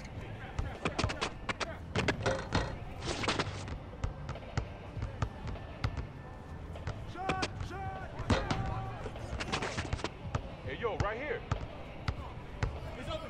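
A basketball bounces repeatedly on hard pavement.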